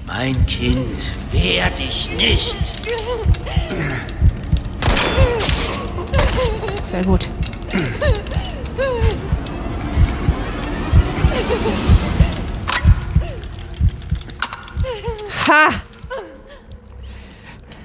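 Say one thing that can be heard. A young woman talks into a close microphone.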